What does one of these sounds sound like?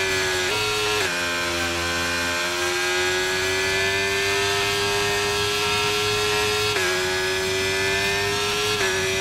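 A racing car engine whines at high revs, shifting gears up and down.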